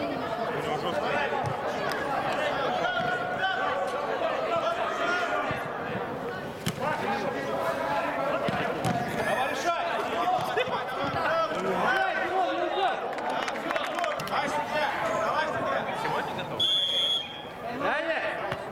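Men shout and call to each other across a large echoing indoor space.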